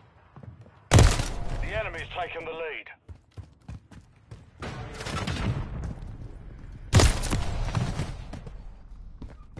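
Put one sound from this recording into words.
A rifle fires loud bursts of shots close by.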